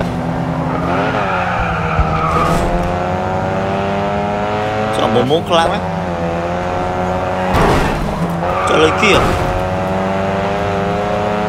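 A racing car engine revs high and shifts through gears.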